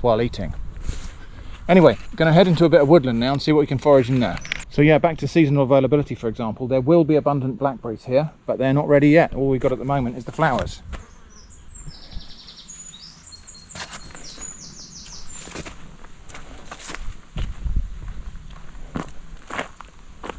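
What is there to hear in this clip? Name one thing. Footsteps crunch along a dry dirt path outdoors.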